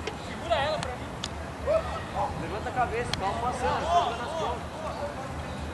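Young men shout and call to each other across an outdoor pitch.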